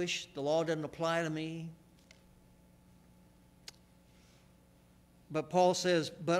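An elderly man speaks calmly into a microphone in a reverberant hall, pausing between phrases.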